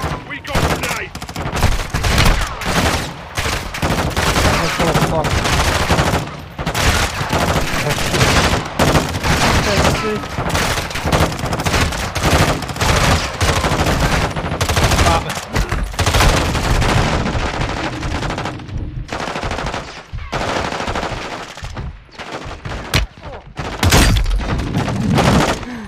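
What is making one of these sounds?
Gunfire rattles and bullets smack loudly against a metal shield.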